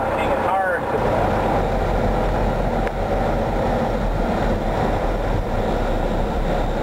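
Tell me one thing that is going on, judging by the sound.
A truck engine rumbles steadily nearby.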